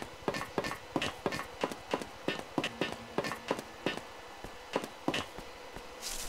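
Footsteps echo quickly through a tunnel.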